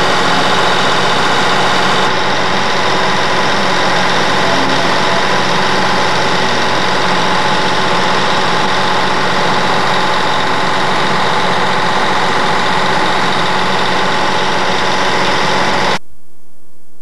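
A fairground ride hums and whirs steadily.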